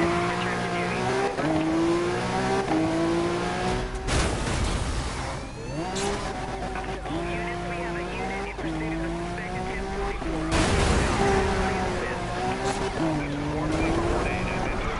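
A car engine roars, climbing in pitch and dropping with each gear change.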